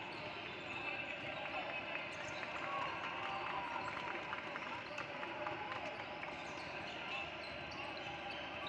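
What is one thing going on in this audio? A crowd of players and onlookers chatter in a large echoing gym.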